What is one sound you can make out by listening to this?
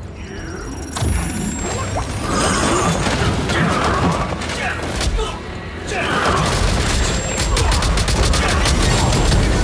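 Video game spell effects crash and burst loudly.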